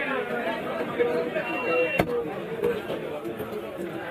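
A heavy knife chops through fish on a wooden block.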